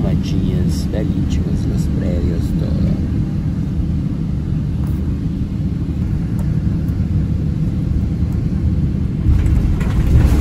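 An aircraft cabin fills with a steady, deep engine roar.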